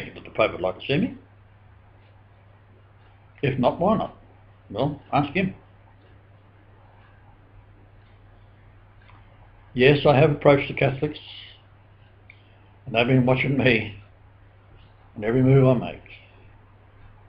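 An elderly man speaks calmly in short phrases, close to a webcam microphone.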